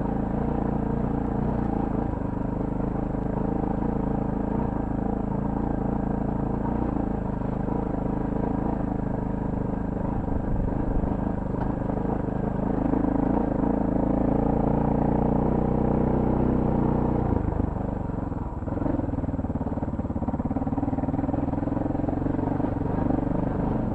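Tyres crunch and rattle over loose stones.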